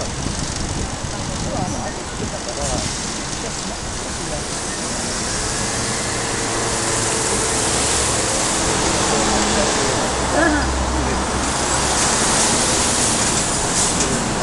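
Cars drive along a road below.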